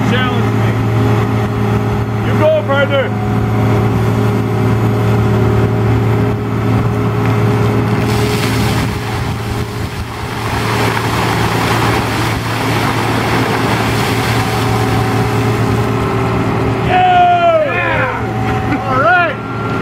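A tracked loader's diesel engine runs.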